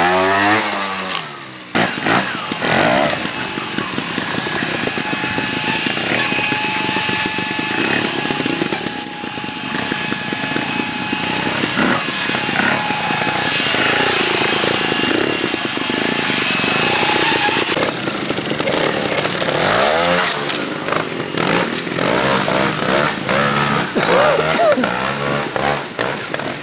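A motorcycle engine revs in short bursts, rising and falling.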